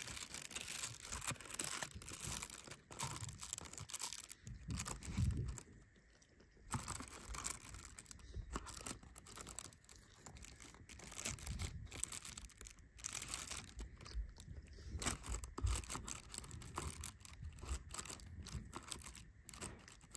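Cloth rustles and brushes close by.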